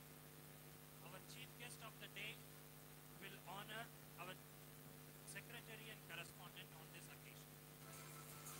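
A man speaks into a microphone over a loudspeaker in a large hall.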